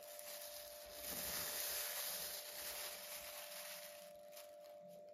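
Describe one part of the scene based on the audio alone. A plastic glove crinkles as it is pulled off.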